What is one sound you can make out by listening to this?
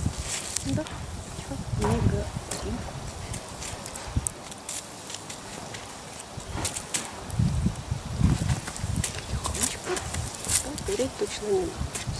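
A fire crackles and pops in smouldering embers.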